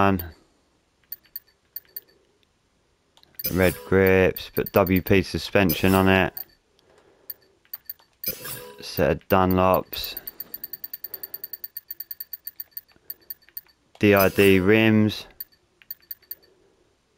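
Short electronic menu clicks tick in quick runs.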